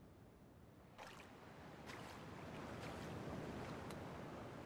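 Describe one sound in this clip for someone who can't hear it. A glass bottle clinks as it is picked up off the ground.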